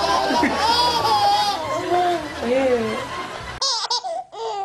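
Several babies laugh loudly together.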